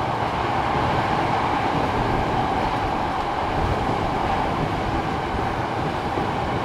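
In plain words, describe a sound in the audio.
A train rumbles and roars steadily along the tracks.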